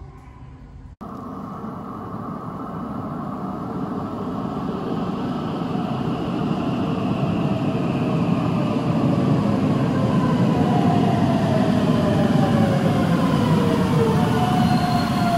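A train rumbles closer through an echoing underground station, growing louder.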